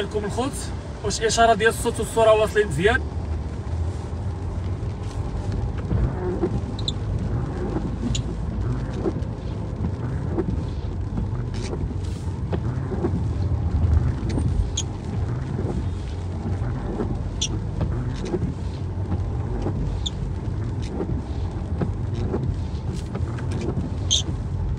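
Tyres swish on a wet road.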